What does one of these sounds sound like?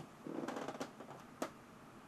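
A man speaks briefly and quietly, close to a microphone.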